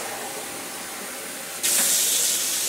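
Water runs from a tap into a jug.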